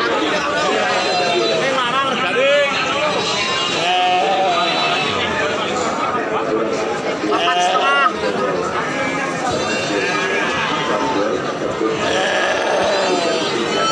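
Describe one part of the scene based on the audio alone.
Sheep bleat close by.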